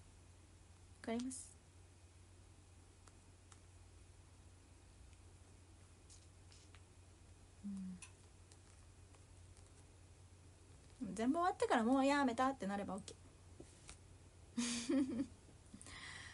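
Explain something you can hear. A young woman speaks briefly and softly close by, with long pauses.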